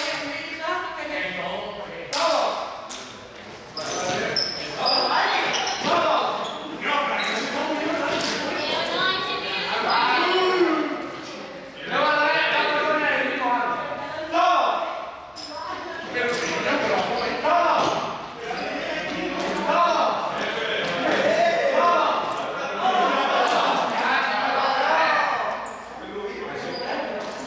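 Young men and women chatter and call out in a large echoing hall.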